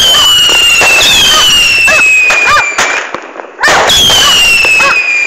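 Fireworks whistle loudly with a slowly falling pitch.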